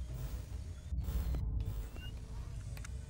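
Electronic static crackles and hisses briefly.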